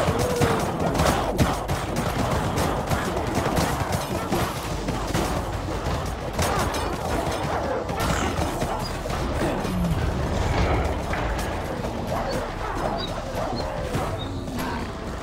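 A large crowd of game creatures grunts, growls and squeals all at once, without a break.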